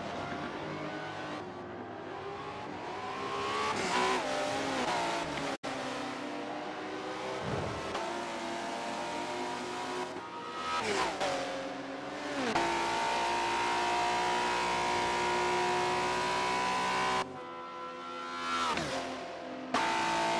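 A sports car engine revs loudly and whines through its gears.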